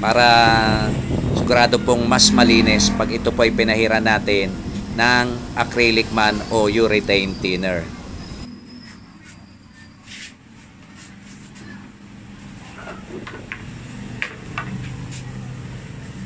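A cloth rubs over a plastic motorcycle fairing.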